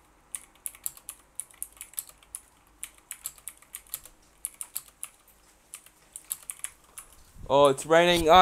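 Keyboard keys click in quick, uneven bursts of typing.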